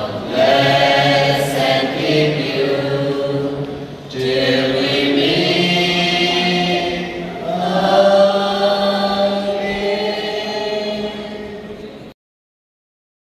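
A group of men and women sing together through a microphone.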